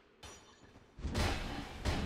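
A sword whooshes through the air in a swing.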